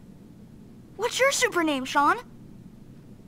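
A young boy asks a question with animation.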